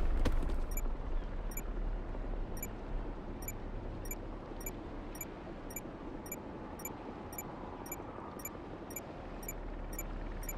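An electronic scanner beeps in short, evenly spaced pips.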